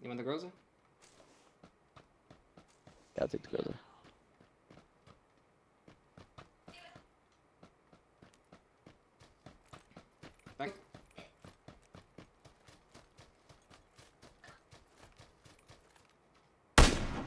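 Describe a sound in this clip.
Footsteps run steadily over dry grass and dirt.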